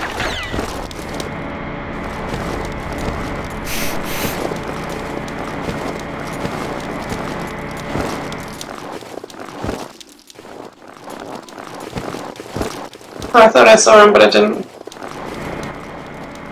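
Footsteps crunch steadily over snow.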